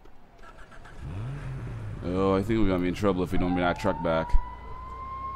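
A small car engine revs and drives off.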